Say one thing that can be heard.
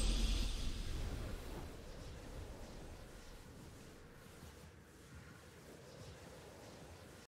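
A triumphant game fanfare rings out and slowly fades.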